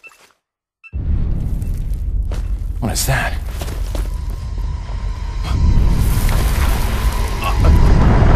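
A young man speaks tensely, close by.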